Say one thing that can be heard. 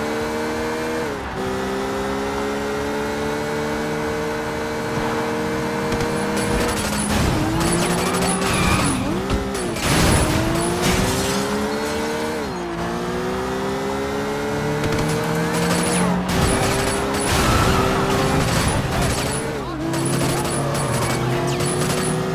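A car engine roars steadily, its pitch rising and falling.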